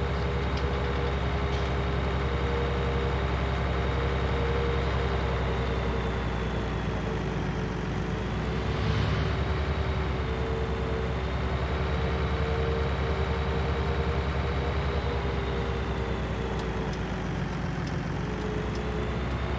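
A tractor engine rumbles steadily from inside the cab as it drives along.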